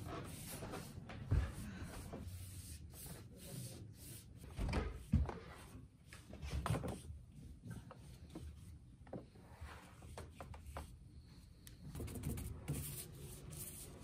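A paintbrush scrapes and swishes across a wooden board.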